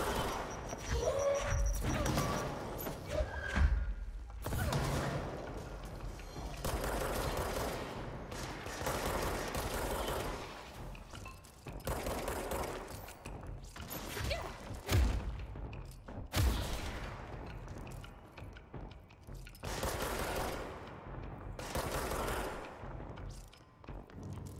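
Gunshots and explosions crack and boom in a video game.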